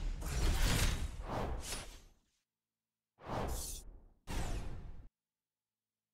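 Game menu panels sweep in with loud whooshing swishes.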